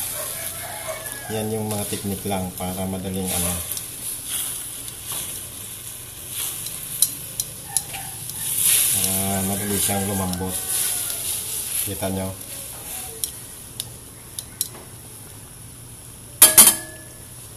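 Metal tongs click and scrape against a metal pan.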